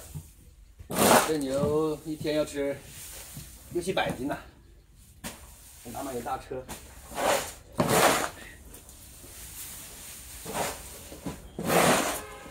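Shovels scrape and scoop through dry straw.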